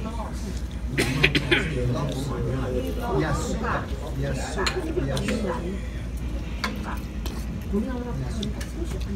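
Metal spoons clink against bowls.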